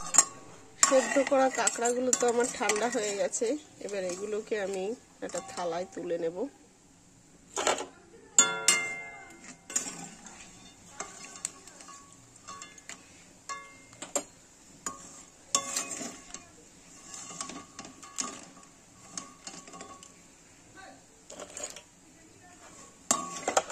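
A metal ladle scrapes and clinks against a metal pan.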